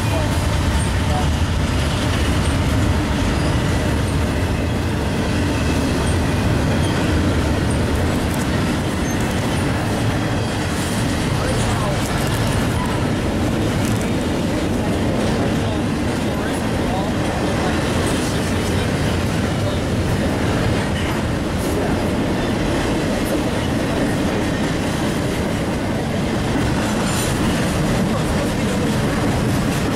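A freight train rumbles past close by, its wheels clattering and squealing on the rails.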